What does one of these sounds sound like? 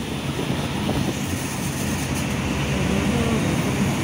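Traffic rumbles past nearby.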